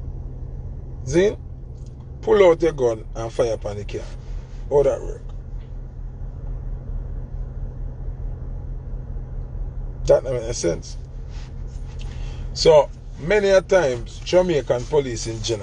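A young man talks animatedly, close to a phone microphone.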